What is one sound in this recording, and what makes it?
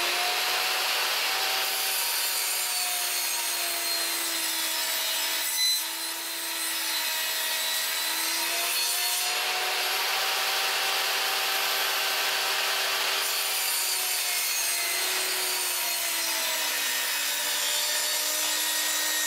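A table saw blade whines steadily as it spins.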